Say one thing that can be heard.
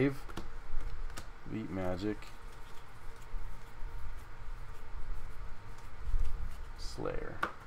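Playing cards slide and rustle against each other as they are shuffled by hand.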